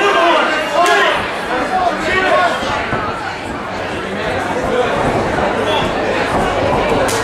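Bare feet shuffle and thud on a padded floor.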